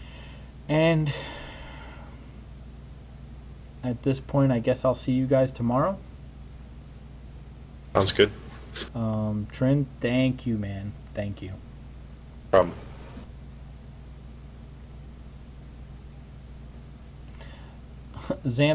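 A man talks casually into a nearby microphone, in short bursts with pauses.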